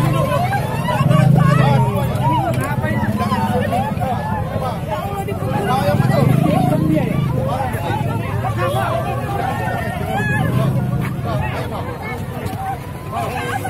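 A large crowd of men and women talk and shout over one another close by, outdoors.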